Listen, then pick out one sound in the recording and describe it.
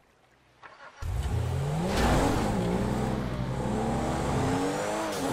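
A car engine starts and revs, then roars as the car drives off.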